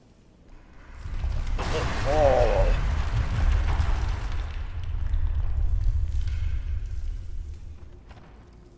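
Rocks tumble and crash down with a deep rumble.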